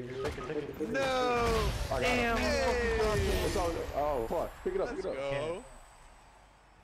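A short triumphant fanfare plays in a video game.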